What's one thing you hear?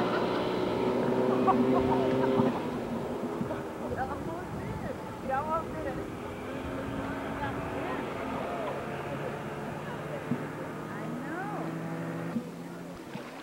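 A motorboat engine roars.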